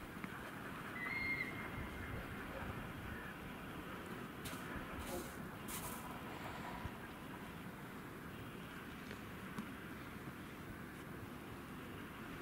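Footsteps crunch on snow nearby.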